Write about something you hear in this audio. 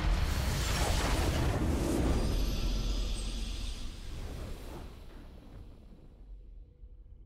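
A triumphant victory sting rings out and slowly fades away.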